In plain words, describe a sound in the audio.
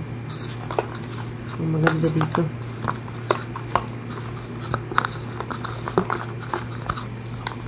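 A cable clicks and taps against a box.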